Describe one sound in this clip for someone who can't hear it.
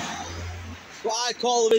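A young man shouts close by.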